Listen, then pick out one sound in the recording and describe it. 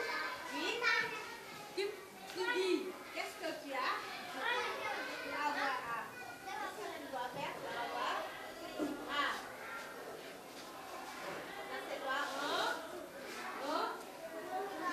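A woman speaks clearly to a group of children nearby.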